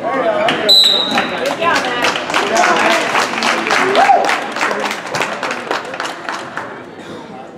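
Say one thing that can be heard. A crowd of spectators claps.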